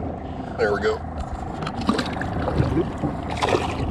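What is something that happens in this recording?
Water splashes as a fish is released.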